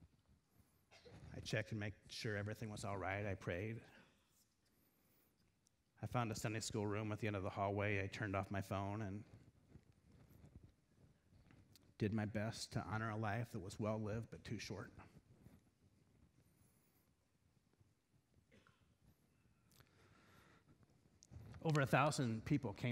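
A middle-aged man speaks calmly and deliberately through a microphone in a large, echoing hall.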